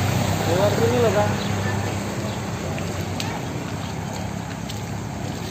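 A motor scooter engine hums nearby.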